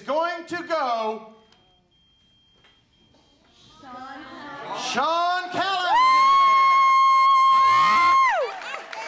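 A man announces with animation through a microphone in a large echoing hall.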